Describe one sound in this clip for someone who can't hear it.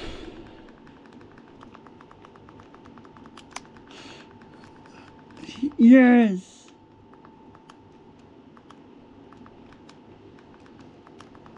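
Buttons click softly under a thumb.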